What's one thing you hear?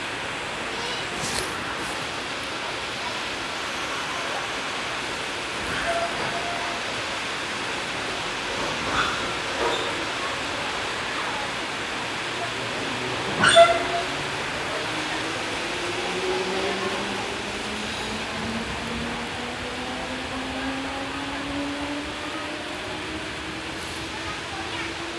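An electric train pulls away from a platform, rumbling along the rails.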